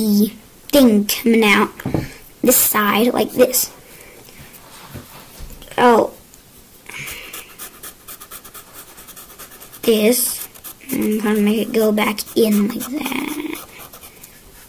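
A child talks calmly close by.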